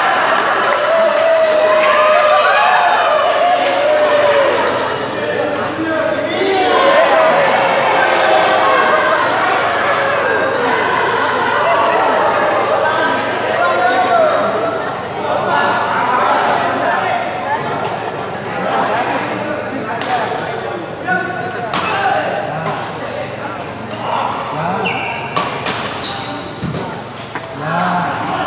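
Many men chatter loudly in a large echoing hall.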